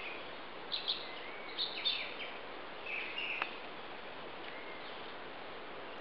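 Leaves rustle softly in a breeze.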